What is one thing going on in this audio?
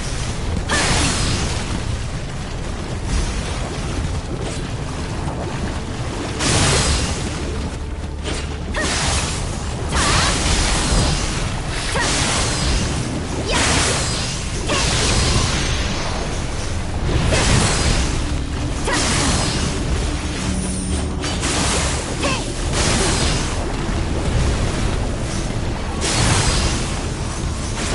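Swords clash and slash in rapid bursts.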